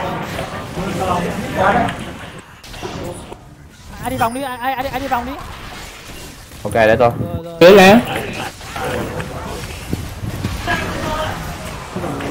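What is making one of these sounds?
Fiery magic blasts whoosh and crackle.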